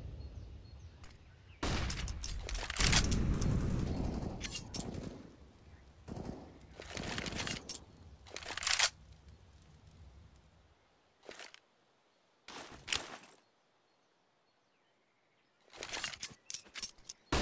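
Quick footsteps run on hard ground.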